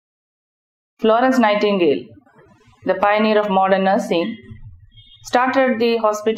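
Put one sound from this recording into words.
A woman speaks calmly and close by, with short pauses.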